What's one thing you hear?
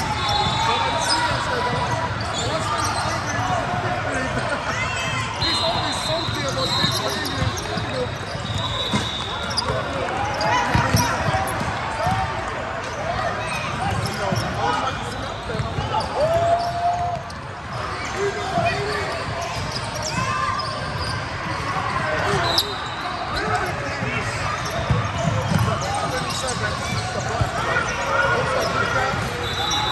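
A crowd of players and spectators chatters and calls out in a large echoing hall.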